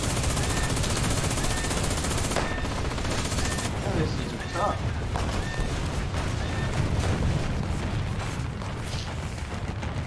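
Explosions boom and crack nearby.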